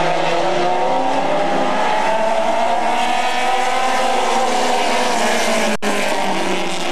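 Race car engines roar loudly and steadily.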